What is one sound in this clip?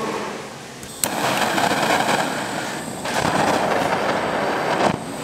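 A gas torch roars with a steady hiss.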